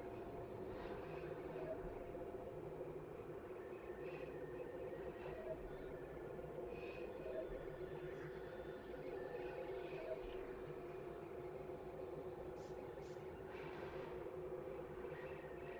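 Soft interface blips chime now and then.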